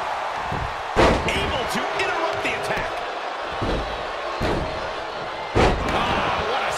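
Heavy thuds of bodies hitting a wrestling mat boom out.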